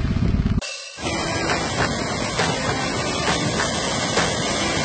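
Many birds splash into the water as they dive.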